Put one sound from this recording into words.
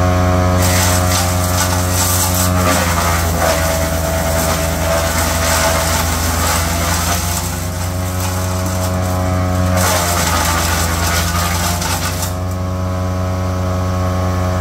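A wood chipper engine drones steadily close by.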